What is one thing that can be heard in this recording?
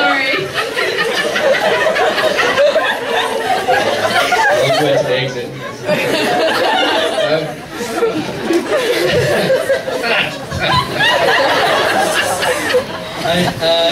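People laugh.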